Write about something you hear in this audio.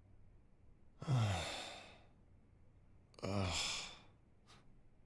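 A young man groans sleepily close by.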